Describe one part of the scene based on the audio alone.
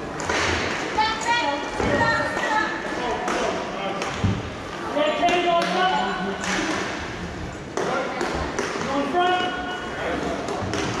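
Young players shout to each other across the hall.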